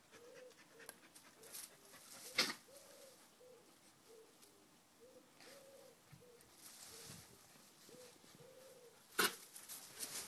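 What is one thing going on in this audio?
A dog rustles through leafy bushes.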